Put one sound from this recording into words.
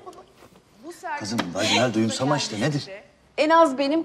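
A man speaks warmly, close by.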